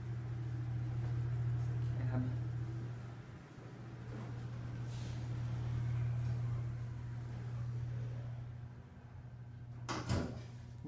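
An elevator hums steadily while moving.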